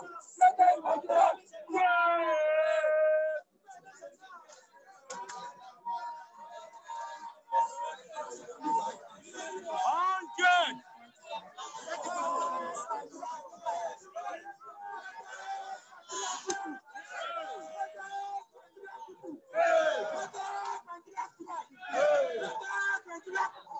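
Young men talk and shout with animation close by.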